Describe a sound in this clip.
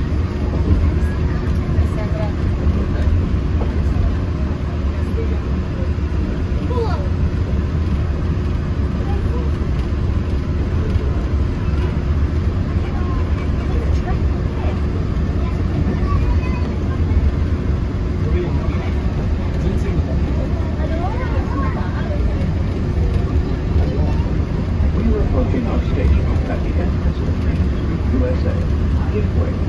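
Buses idle nearby with a low, steady rumble.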